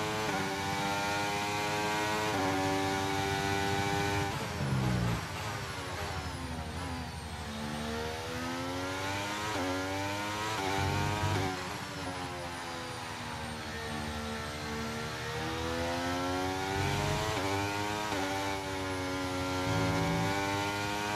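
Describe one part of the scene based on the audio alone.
A racing car engine revs high, rising and dropping in pitch as gears shift.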